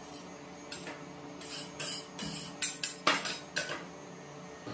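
Metal spatulas scrape and tap against a metal plate.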